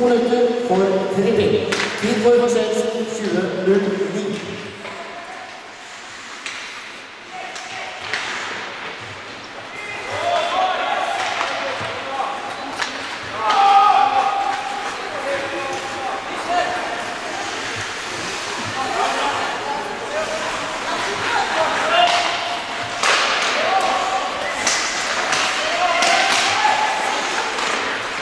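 Ice hockey skates scrape and carve across the ice.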